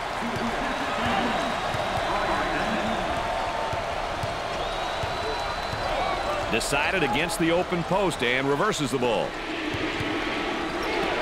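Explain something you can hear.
A large crowd cheers and murmurs in an echoing arena.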